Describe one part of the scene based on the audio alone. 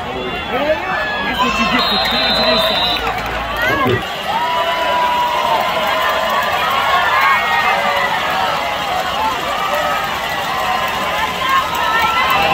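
A large outdoor crowd cheers and chatters.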